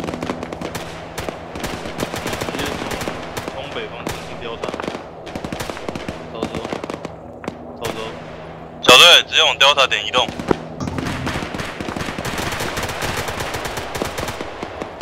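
Rifles fire in sharp, rapid shots.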